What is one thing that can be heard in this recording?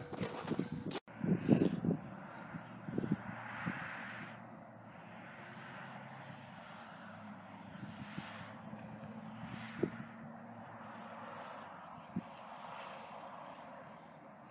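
Wind blows across open ground outdoors.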